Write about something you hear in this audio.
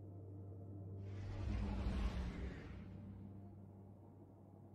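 A spaceship engine rumbles and whooshes as it swoops close.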